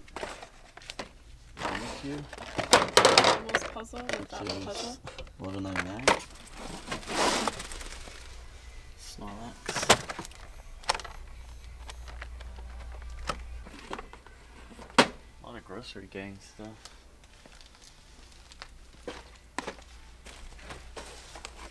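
Cardboard toy boxes rattle and scrape as they are handled.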